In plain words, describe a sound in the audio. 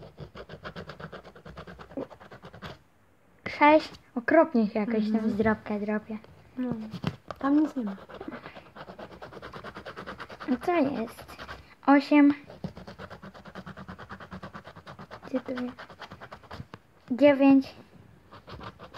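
A coin scratches rapidly at a scratch card.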